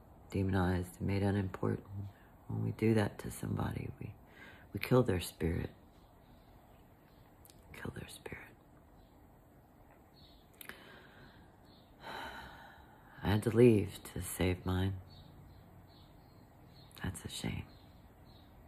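A middle-aged woman speaks slowly and softly close to a microphone, with long pauses.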